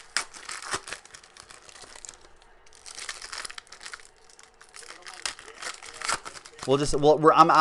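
Foil wrappers crinkle.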